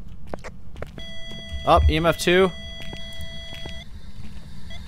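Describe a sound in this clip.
An electronic meter gives off steady high beeping tones.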